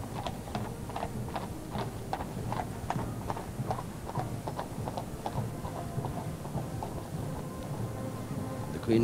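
Horses' hooves clop steadily on the ground.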